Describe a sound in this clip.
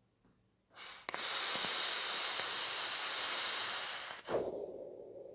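A man draws hard on a vape with a hissing crackle.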